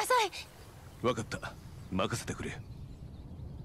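A man answers calmly in a low voice.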